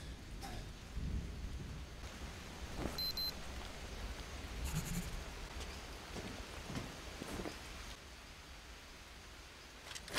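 Footsteps crunch on leafy ground.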